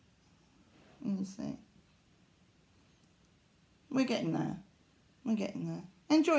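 A middle-aged woman talks calmly, close by.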